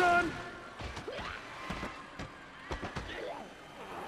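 Zombies groan and moan nearby.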